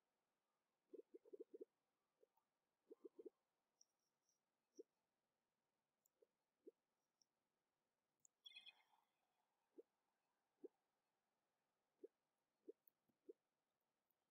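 Short electronic blips sound as a game ball is kicked and bounces.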